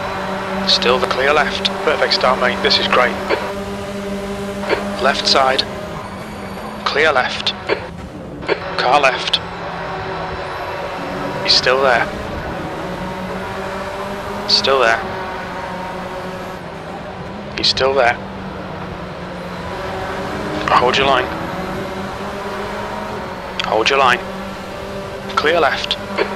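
A racing car engine roars steadily.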